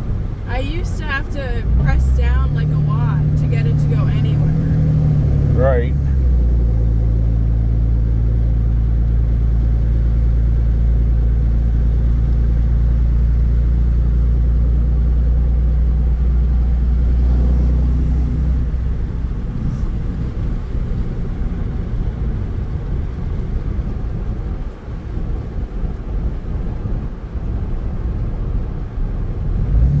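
Tyres roll on a paved road.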